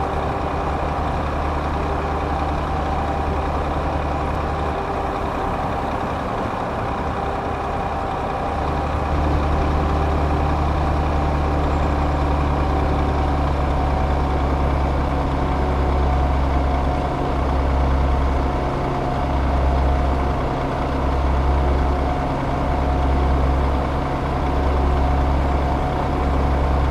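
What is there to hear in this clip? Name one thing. Tyres roll and hum on a motorway.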